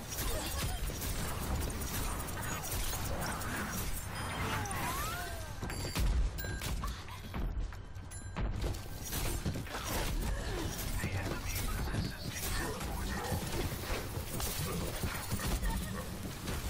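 A game gun fires rapid energy shots.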